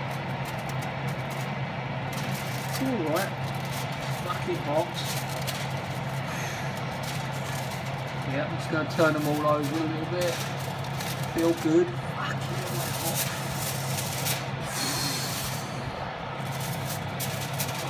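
Aluminium foil crinkles and rustles as food is picked from it.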